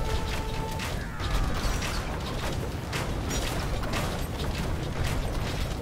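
Swords clash and clang in a busy battle.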